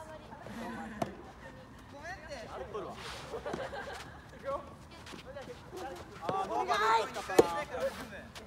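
A tennis ball pops off a racket.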